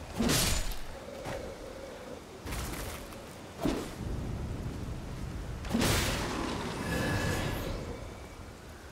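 A blade swings and strikes with sharp whooshing hits.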